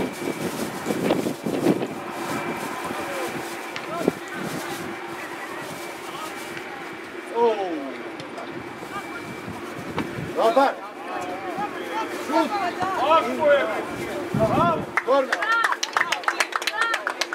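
A football thumps as it is kicked.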